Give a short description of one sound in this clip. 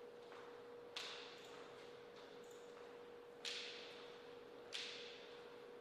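A table tennis ball bounces on a hard surface with sharp taps.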